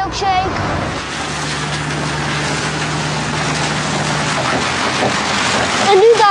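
A car drives along a wet road, tyres hissing on the water.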